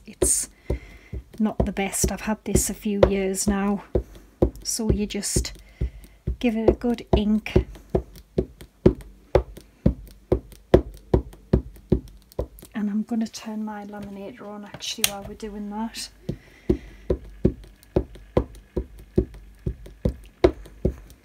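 An ink pad taps lightly and quickly against a rubber stamp.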